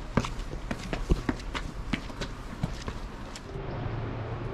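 Footsteps climb stone steps.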